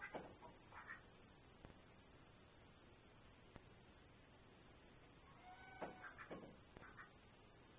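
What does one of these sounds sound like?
Ducks quack softly in short bursts, close by.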